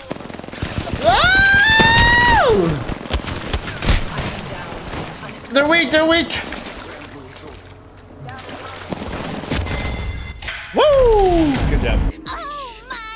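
A young man shouts and yells excitedly.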